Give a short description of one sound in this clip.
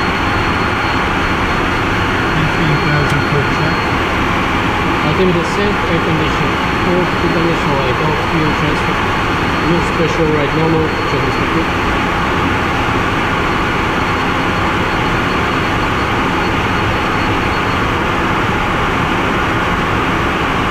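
Wind rushes loudly past the aircraft.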